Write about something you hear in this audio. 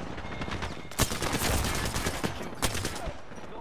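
Gunfire rattles in rapid bursts close by.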